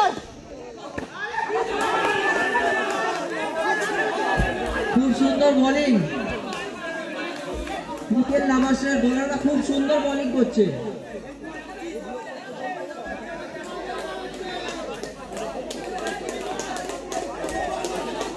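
A crowd outdoors cheers and shouts.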